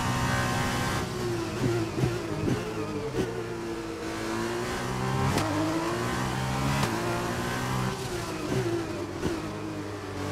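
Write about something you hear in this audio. A racing car engine drops in pitch as the car brakes hard for corners.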